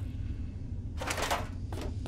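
A metal box creaks and rattles open.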